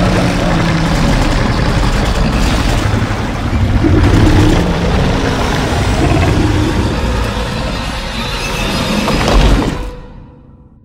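A huge monster roars and growls deeply.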